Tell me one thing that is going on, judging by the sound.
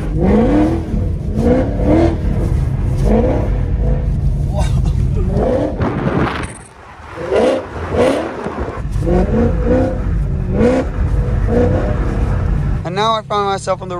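A car engine roars steadily.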